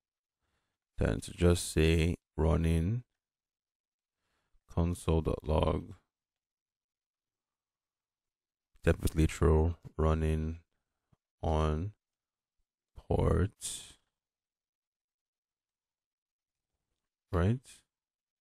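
A man talks calmly and closely into a microphone, in short phrases with pauses.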